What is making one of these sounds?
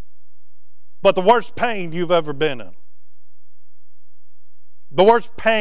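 A man speaks through a microphone in a large echoing room, pausing between phrases.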